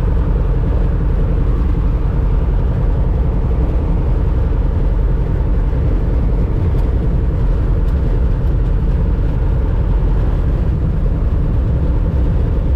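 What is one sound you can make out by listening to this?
A small plane's engine drones loudly and steadily from inside the cabin.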